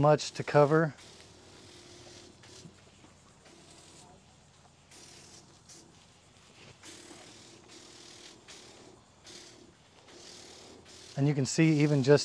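A garden sprayer hisses softly in short bursts.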